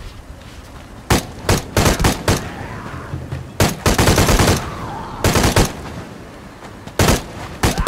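Creatures snarl and shriek as they charge.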